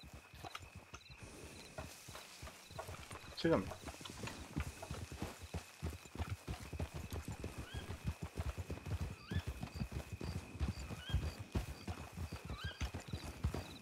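Horse hooves thud steadily on dry ground.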